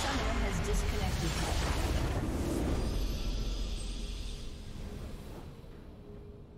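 A loud crystal-shattering explosion booms and rumbles, then fades.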